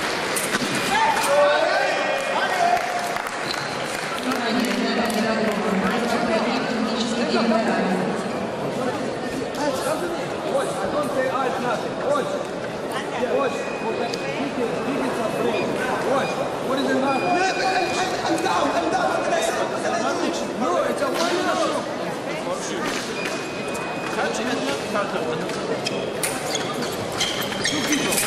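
Fencing blades click and clash.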